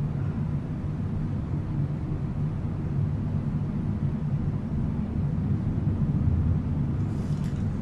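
Small plastic pieces click faintly between fingers.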